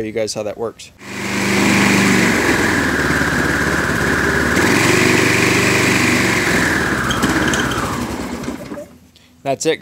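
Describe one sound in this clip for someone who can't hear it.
A small petrol engine runs loudly and then winds down to a stop.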